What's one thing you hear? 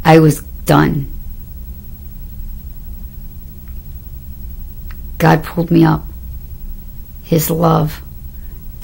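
A middle-aged woman speaks close to the microphone in short bursts with pauses.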